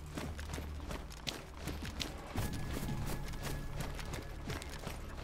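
Footsteps rustle through tall grass at a steady walking pace.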